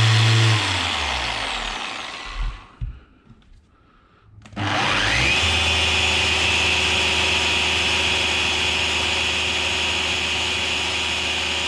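A polisher motor whirs, winds down, then starts and spins up to a steady high whine.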